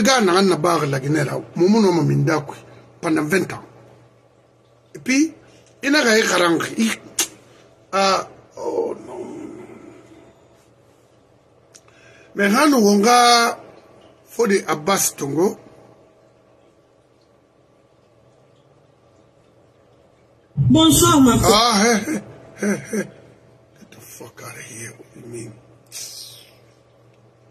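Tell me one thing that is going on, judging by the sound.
An elderly man speaks with animation close to a microphone, in short bursts with pauses.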